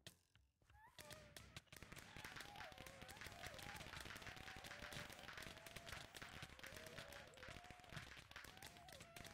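Magic spells burst and crackle rapidly in a fight.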